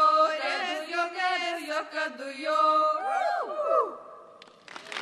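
A young woman sings solo into a microphone.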